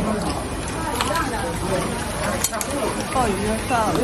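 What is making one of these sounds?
A metal scoop scrapes and clinks in a tank of water.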